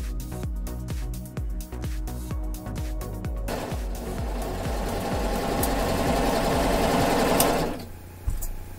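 A sewing machine whirs rapidly as it stitches.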